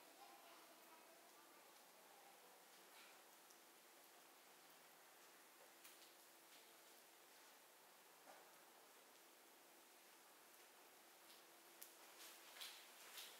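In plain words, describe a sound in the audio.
A fire burns with soft crackles and pops.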